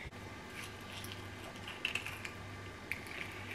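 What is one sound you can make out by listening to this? An avocado half squelches softly as it is squeezed by hand.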